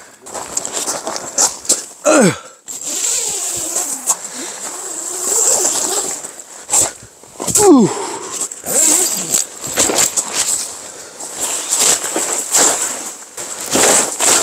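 Tent fabric rustles and flaps as a man handles it.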